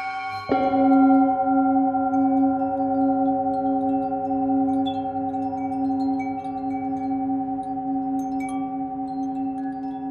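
A metal singing bowl is struck and rings on with a steady, gently pulsing hum.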